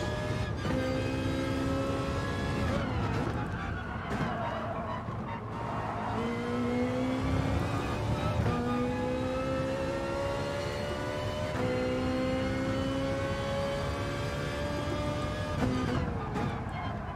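A racing car engine revs up and down through gear changes.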